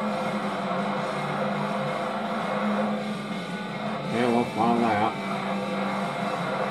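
A racing car engine hums steadily from a television's speakers.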